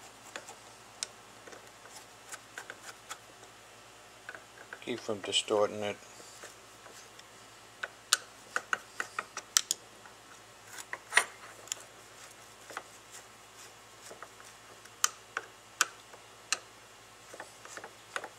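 A screwdriver clicks and scrapes against metal screws.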